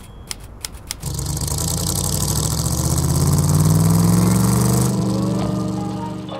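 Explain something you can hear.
A car engine rumbles and revs up.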